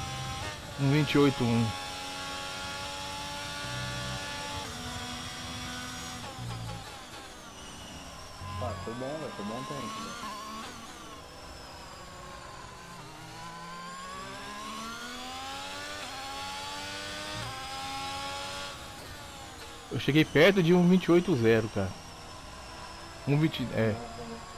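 A racing car engine whines at high revs, rising and falling with each gear change.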